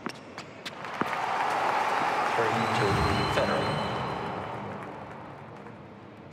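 An arena crowd cheers and applauds.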